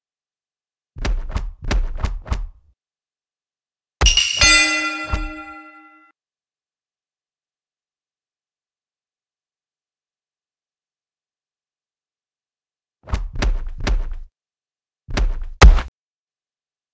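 Gloved punches thud in quick bursts.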